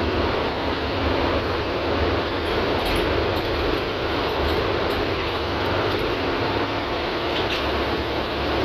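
A bus body rattles and clinks over the road.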